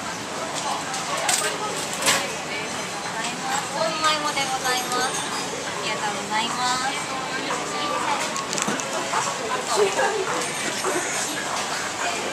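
People chatter in the background of a busy indoor space.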